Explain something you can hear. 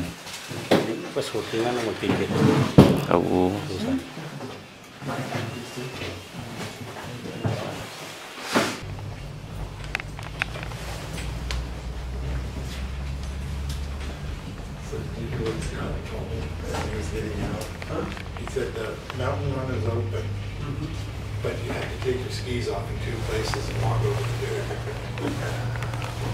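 Men and women chatter nearby in a crowd.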